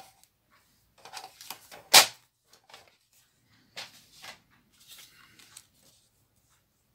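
Paper and card rustle and tap as they are handled.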